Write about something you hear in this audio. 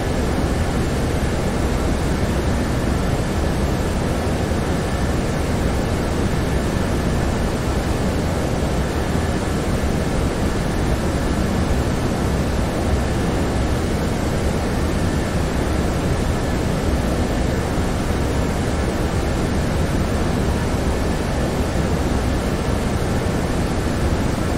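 A jet airliner's engines drone steadily with a constant rushing roar.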